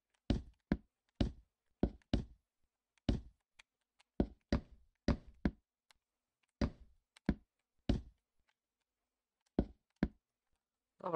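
Wooden blocks are placed one after another with short, dull knocks.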